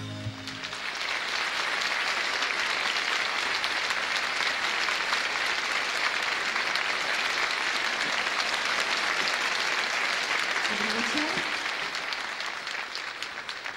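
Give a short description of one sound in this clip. A large audience applauds loudly in an echoing hall.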